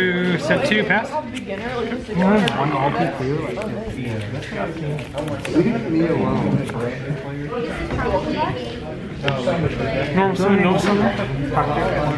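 Playing cards slide and tap softly on a cloth mat.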